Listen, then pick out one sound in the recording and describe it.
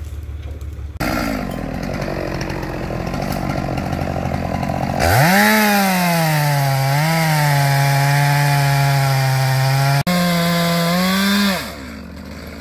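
A chainsaw revs loudly and cuts through wood.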